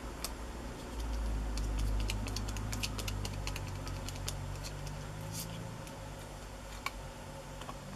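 Fingers rub and press a cardboard piece on a table.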